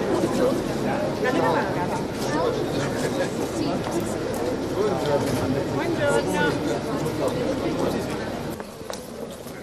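An elderly man talks calmly up close.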